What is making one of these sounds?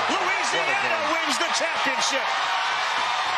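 Young boys shout and cheer excitedly.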